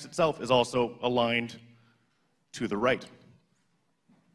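A man speaks through a microphone in an echoing hall, with pauses.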